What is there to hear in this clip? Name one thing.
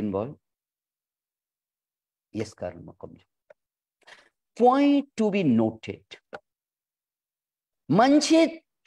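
A middle-aged man speaks calmly in pauses over an online call.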